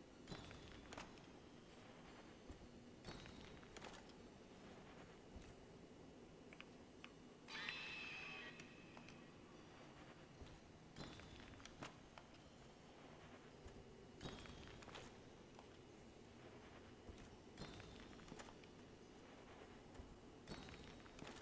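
Metal armour clanks with each step.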